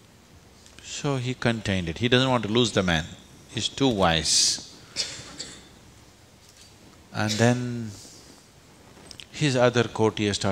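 An elderly man speaks calmly and expressively, close to a microphone, with pauses.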